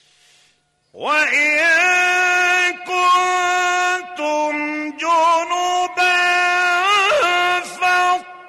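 An elderly man chants in a long, drawn-out melodic voice, heard through a microphone.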